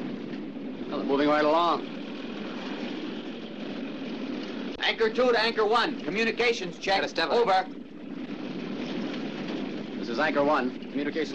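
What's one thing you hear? A young man shouts close by over engine noise.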